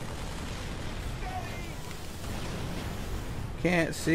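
A large explosion booms nearby.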